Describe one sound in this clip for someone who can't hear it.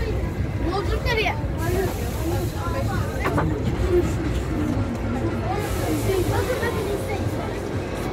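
Men and women chatter nearby as a train passes.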